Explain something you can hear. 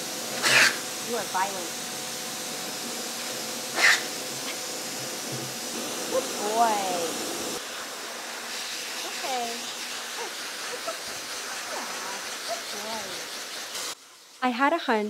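A pet dryer blows air with a steady loud roar.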